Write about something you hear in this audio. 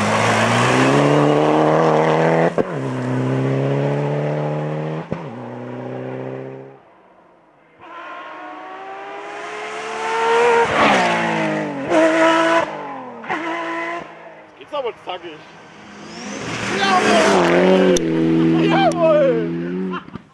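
A rally car engine roars at high revs and changes gear as the car speeds past.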